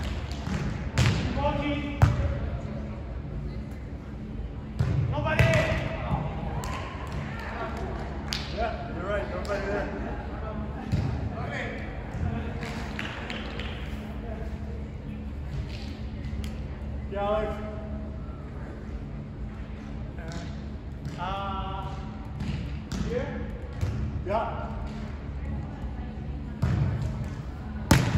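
A volleyball is struck with dull slaps in a large echoing hall.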